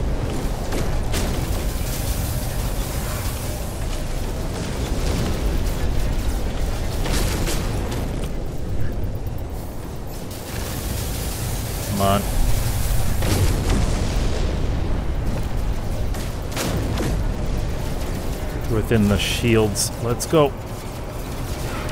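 A spaceship engine rumbles low and steadily.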